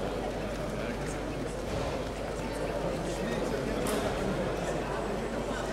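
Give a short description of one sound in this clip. A crowd of spectators murmurs and chatters in a large hall.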